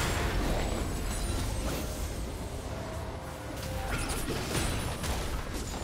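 Spell blasts and impacts crackle and boom in a game fight.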